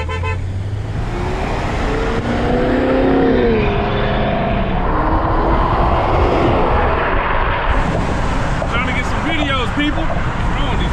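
Wind and road noise roar through an open car window.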